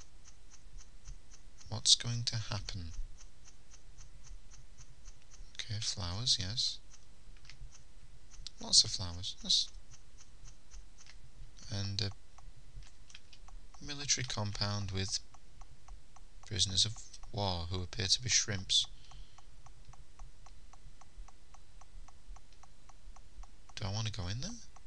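Soft footsteps patter steadily along a path.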